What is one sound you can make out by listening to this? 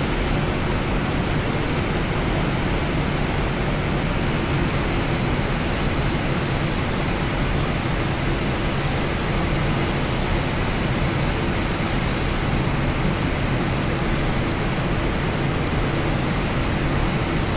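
A jet engine roars steadily as an airliner rolls down a runway.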